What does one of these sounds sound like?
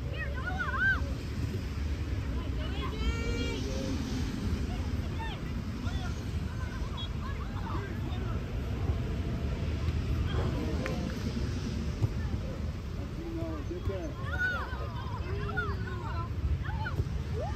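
Children shout and call out from a distance.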